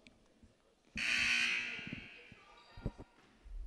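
A crowd of spectators cheers in an echoing gym.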